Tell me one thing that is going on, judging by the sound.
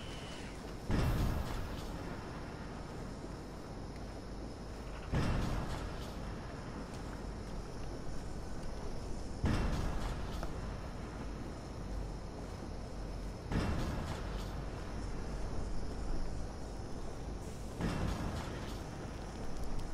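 Soft footsteps creep over wet ground and gravel.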